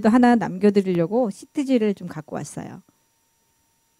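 A woman speaks with animation into a microphone close by.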